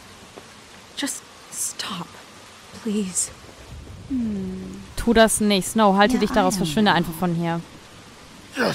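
A woman speaks tensely, pleading.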